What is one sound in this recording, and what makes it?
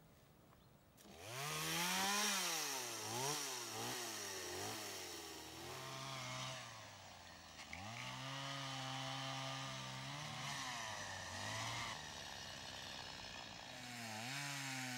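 A chainsaw engine starts and revs up and down loudly.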